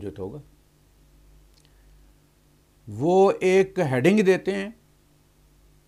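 A middle-aged man speaks calmly and in a slow, drawn-out way into a close microphone.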